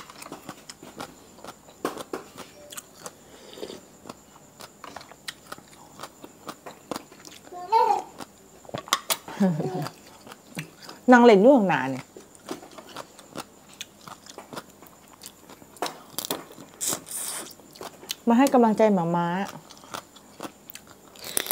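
A woman chews and slurps food loudly close to a microphone.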